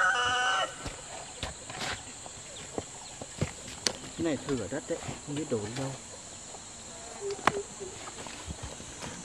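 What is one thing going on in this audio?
A hoe scrapes and knocks on soil and stones.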